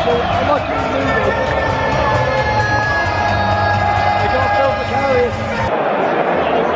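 A young man shouts and sings with excitement right beside the microphone.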